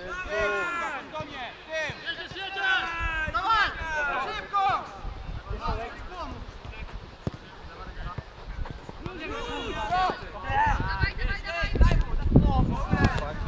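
Men shout to each other outdoors across a playing field.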